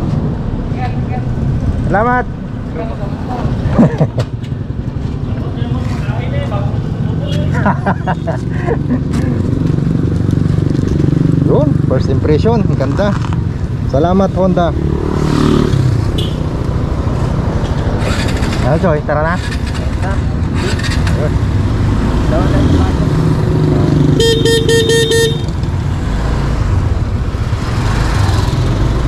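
A scooter engine idles with a low steady rumble.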